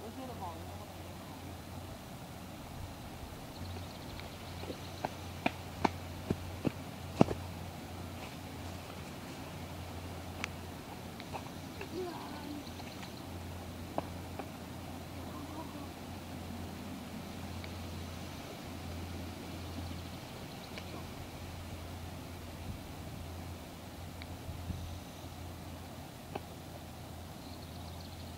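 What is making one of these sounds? Children shout faintly in the distance outdoors.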